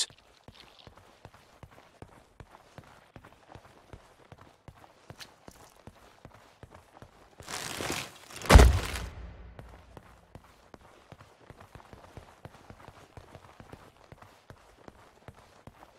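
Footsteps tap quickly on a hard stone floor, echoing in a large hall.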